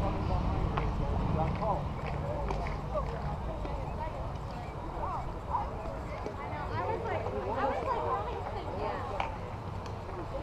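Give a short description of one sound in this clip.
Young women shout and call out across an open field in the distance.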